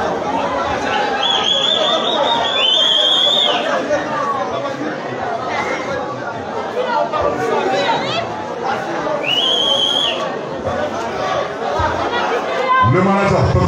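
Young men talk loudly close by.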